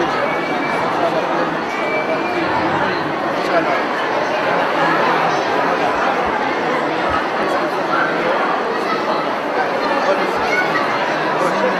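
Men greet each other with short, warm words up close.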